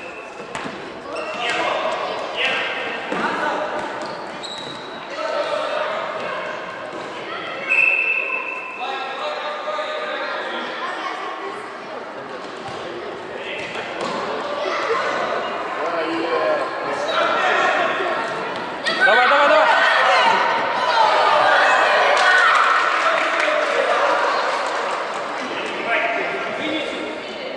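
A ball thuds as it is kicked across a wooden floor.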